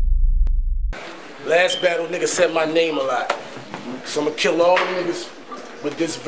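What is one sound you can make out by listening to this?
A young man speaks forcefully and rhythmically, close by.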